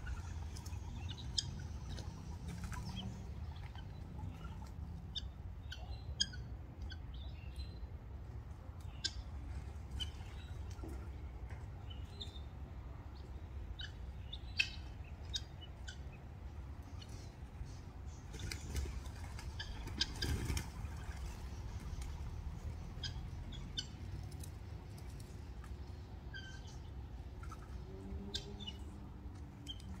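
Guineafowl chirp and call.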